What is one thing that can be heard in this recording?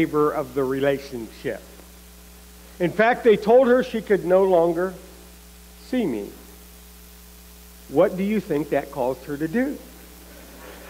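A man speaks calmly through a microphone, pausing often.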